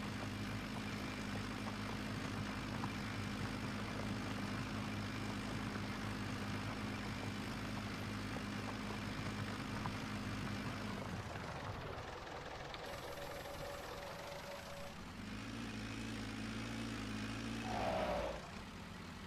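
A plough scrapes and rumbles through soil.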